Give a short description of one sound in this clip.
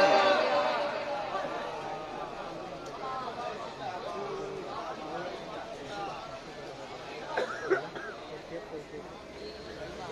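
A crowd of men talks and calls out at once in a large, echoing gathering.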